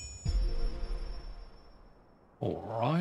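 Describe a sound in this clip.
A hammer strikes an anvil with a ringing clang.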